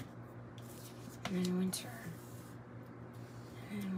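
A card is laid down with a soft tap.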